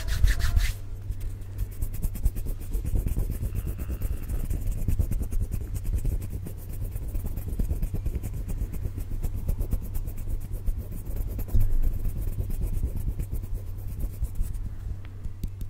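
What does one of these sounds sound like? Fingers rub and tap close to a microphone in quick, crackly bursts.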